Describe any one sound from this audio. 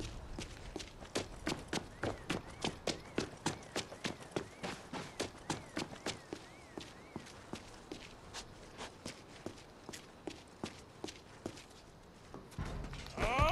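Quick footsteps tap on hard pavement.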